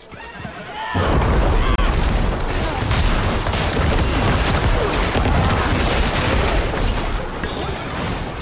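Magic blasts and explosions crash and rumble without pause.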